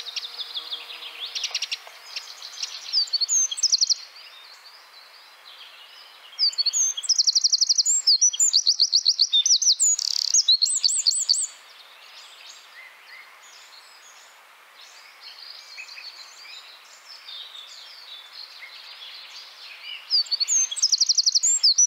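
A small bird sings a loud, rapid, trilling song close by, in bursts.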